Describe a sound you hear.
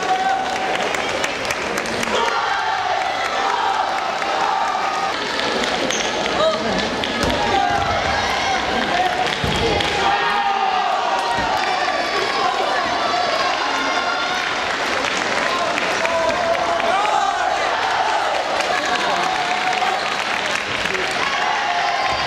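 A crowd of young people shouts and cheers loudly in a large echoing hall.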